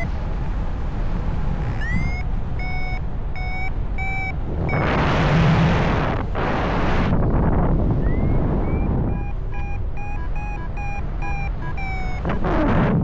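Wind rushes and buffets loudly outdoors during flight.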